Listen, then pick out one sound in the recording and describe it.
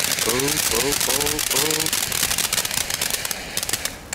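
A firework crackles and pops rapidly.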